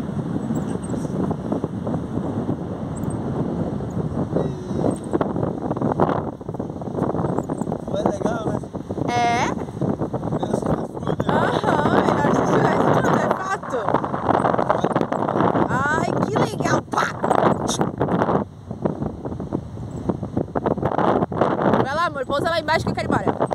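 Strong wind buffets a microphone outdoors.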